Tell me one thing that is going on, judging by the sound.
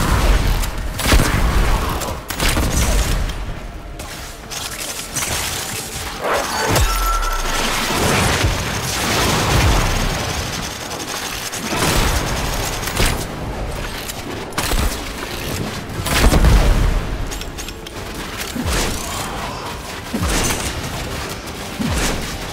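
Heavy weapons fire in fast, crackling bursts.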